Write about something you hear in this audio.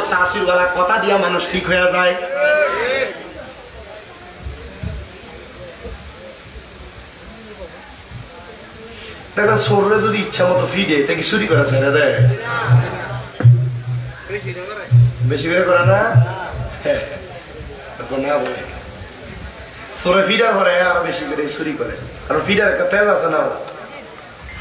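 A young man sings and recites with feeling into a microphone, heard loud through a loudspeaker.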